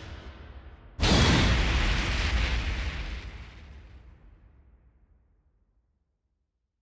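A fiery blast roars and slowly dies away.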